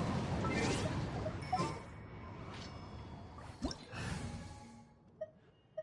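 A magical burst crackles and whooshes loudly.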